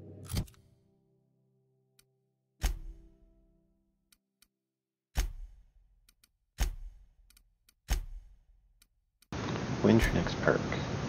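Short menu whooshes and clicks sound as tabs switch.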